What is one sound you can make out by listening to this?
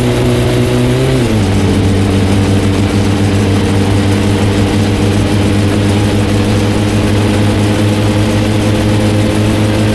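A car engine drones steadily, dropping in pitch after a gear change.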